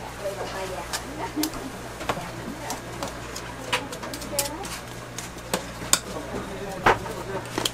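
A metal scoop clicks and scrapes as food is scooped.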